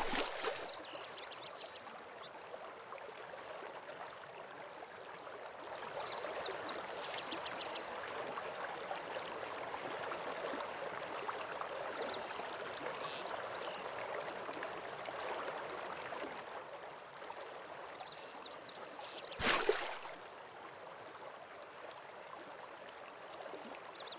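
Footsteps crunch on a stone path.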